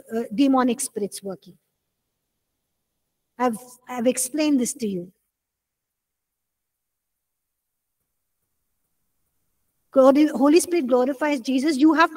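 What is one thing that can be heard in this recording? A woman speaks calmly into a close microphone, with pauses.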